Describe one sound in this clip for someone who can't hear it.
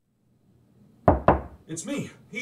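Two loud knocks sound on a door.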